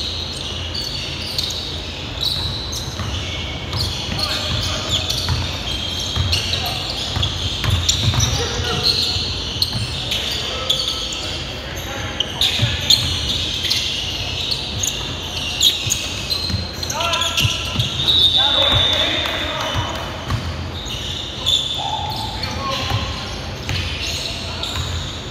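Basketball shoes squeak sharply on a hardwood floor in a large echoing gym.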